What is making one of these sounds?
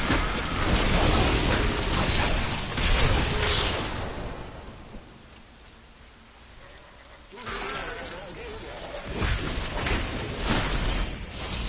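Spell blasts and combat effects crash in a video game battle.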